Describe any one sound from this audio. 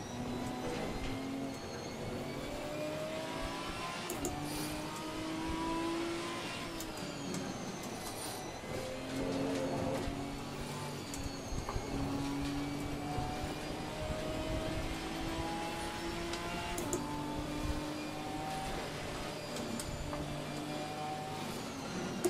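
A racing car engine revs and changes pitch as it shifts gears.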